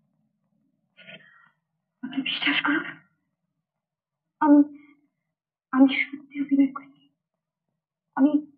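A young woman speaks in an upset, pleading voice close by.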